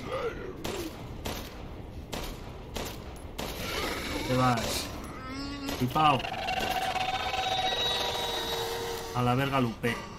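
A monster growls and shrieks.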